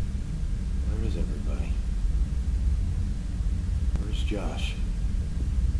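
A young man asks questions in an urgent voice.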